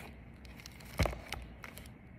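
A folder taps down on a table.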